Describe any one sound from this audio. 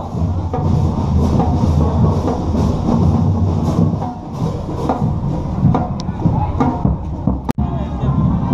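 Drums beat a steady marching rhythm.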